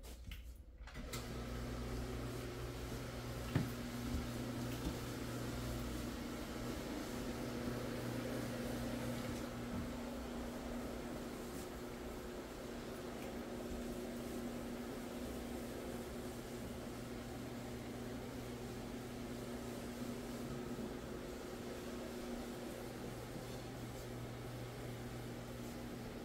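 A carpet cleaning machine hums and drones steadily.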